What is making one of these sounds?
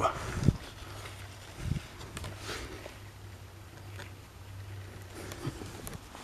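A gloved hand scrapes and digs into loose soil.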